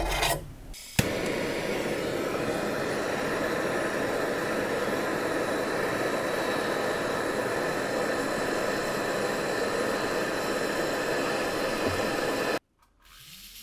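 A gas torch roars.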